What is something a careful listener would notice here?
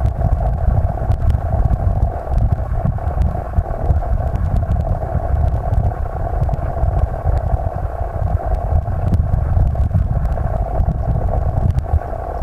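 Water rushes and gurgles in a stream, heard from underwater.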